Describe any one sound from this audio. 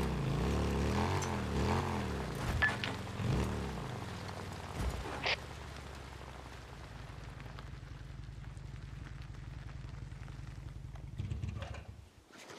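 Motorcycle tyres crunch over a dirt track.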